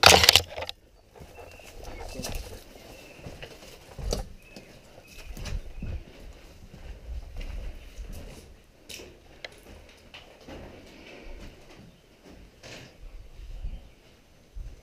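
Footsteps crunch and scrape on rubble and grit.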